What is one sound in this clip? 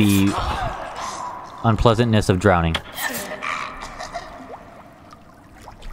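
A blade hacks into flesh with wet thuds.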